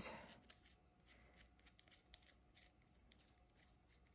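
A mechanical pencil's cap twists with faint clicks.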